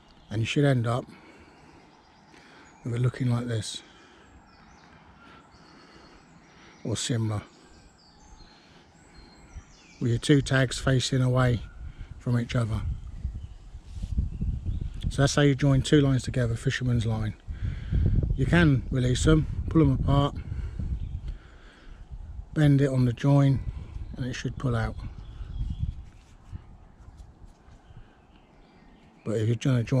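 A cord rubs and rustles softly as it is tied into a knot.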